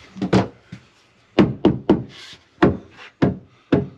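A rubber mallet knocks on a wooden panel.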